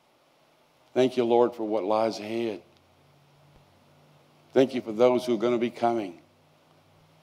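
An elderly man speaks with feeling through a microphone.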